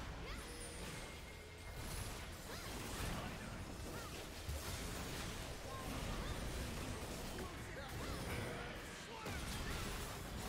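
Game spell effects whoosh and crackle in quick bursts.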